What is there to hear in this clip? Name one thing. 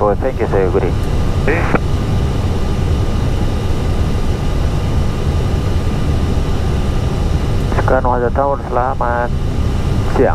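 A steady low roar of an aircraft's engines and rushing air.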